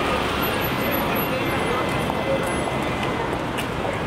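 A small truck drives past.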